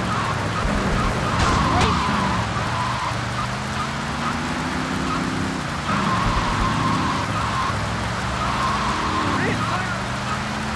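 A car engine hums steadily, rising and falling in pitch.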